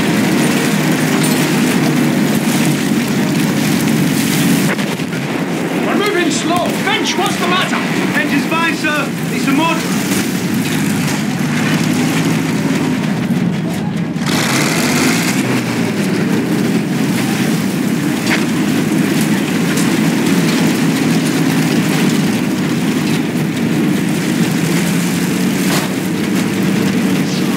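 A heavy tank engine rumbles and clanks steadily.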